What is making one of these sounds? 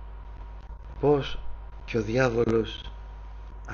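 A man speaks calmly into a microphone, heard through an online stream.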